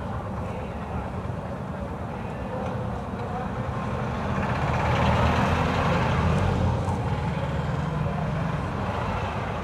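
Engines of buses and vans rumble and idle nearby in heavy traffic.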